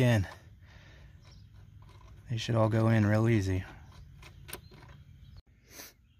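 A hand tool clicks against metal.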